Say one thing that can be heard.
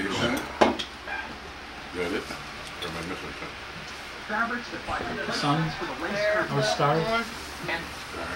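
An elderly man talks casually close by.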